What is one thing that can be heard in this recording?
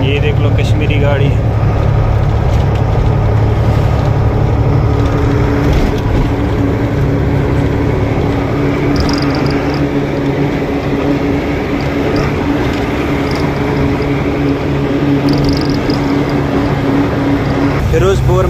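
Wind and road noise rush past an open window.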